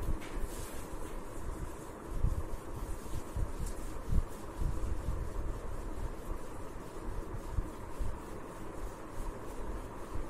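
A duster rubs across a whiteboard.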